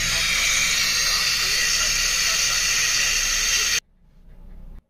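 Radio static hisses loudly from a small phone loudspeaker, then cuts off abruptly.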